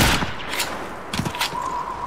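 A gun's magazine clicks and clatters during a reload.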